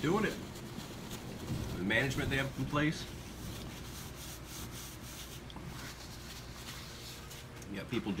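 Paper wrapping rustles and crinkles.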